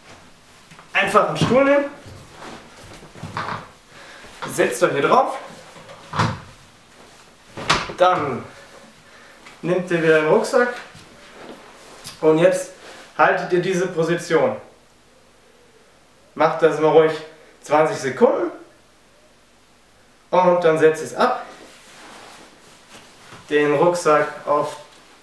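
A young man talks calmly to the listener, close by.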